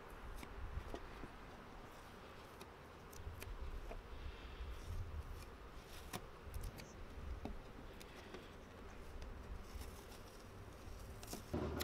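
Tape peels off a board with a sticky rip.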